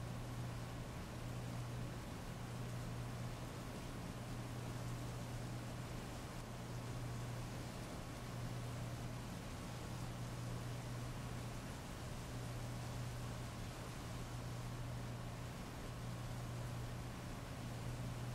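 Heavy rain pours steadily and splashes on pavement.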